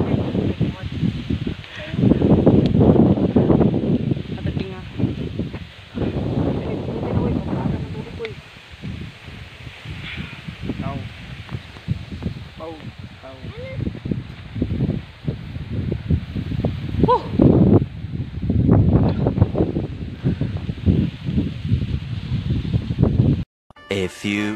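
Wind blows over the microphone outdoors.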